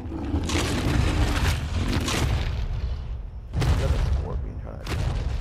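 Heavy creatures stomp and thud across the ground.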